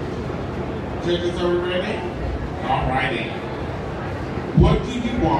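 A woman speaks through a microphone over loudspeakers in a large echoing hall.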